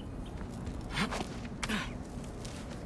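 Rocky handholds scrape and thud during a climb.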